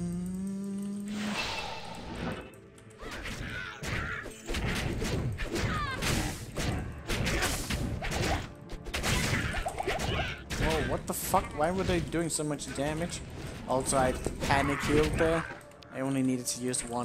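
Fighting sounds clash and crackle from a game.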